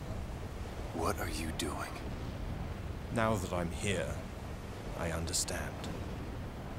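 A creature speaks in a deep, growling voice.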